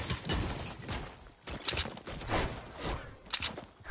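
A pickaxe swishes through the air in a video game.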